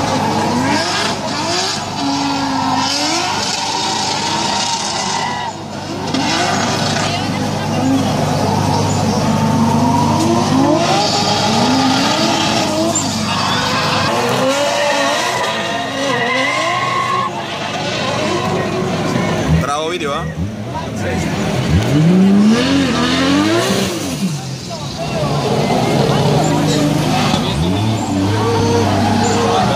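Tyres screech and squeal on the tarmac.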